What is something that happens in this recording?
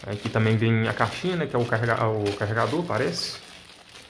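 Plastic wrap crinkles as hands unwrap it.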